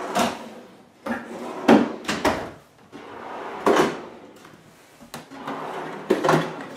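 A wooden drawer slides open and shut on its runners.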